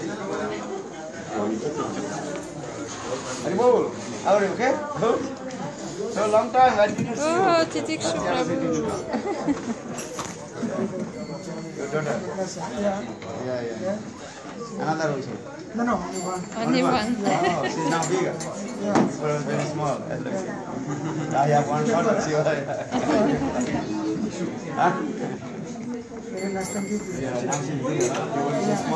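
Several men talk and laugh together close by.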